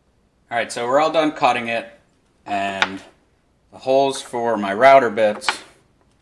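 A small metal part clicks down onto a wooden board.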